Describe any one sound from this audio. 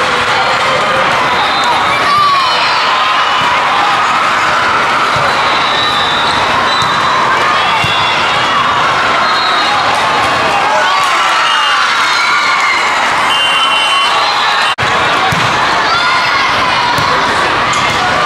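A volleyball thumps as players hit it.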